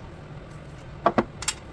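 Metal parts clink together a few times.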